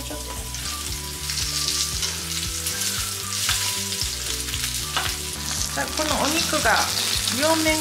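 Meat sizzles in hot oil in a pan.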